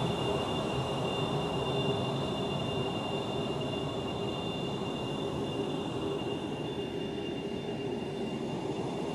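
The jet engines of an F-22 Raptor fighter roar and whine as it taxis.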